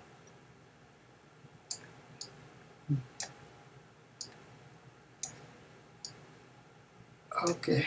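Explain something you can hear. A stylus taps and clicks on a tablet.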